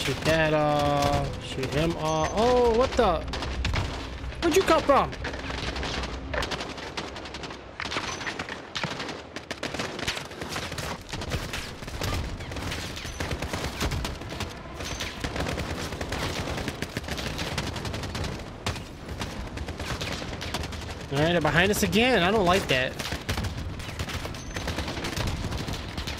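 Rifle shots crack sharply now and then.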